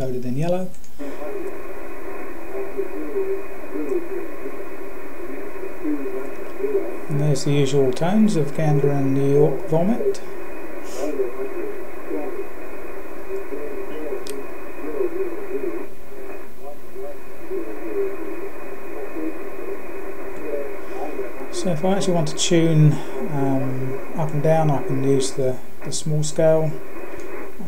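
Radio static hisses steadily from a shortwave receiver.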